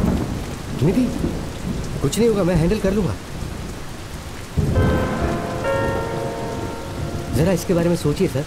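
A middle-aged man speaks in a low, tense voice close by.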